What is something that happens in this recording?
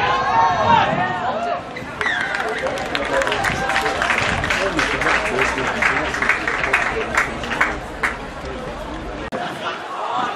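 Young players shout and call out excitedly across an open field.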